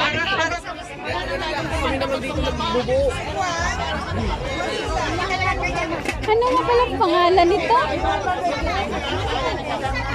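Several people chatter nearby in a busy outdoor crowd.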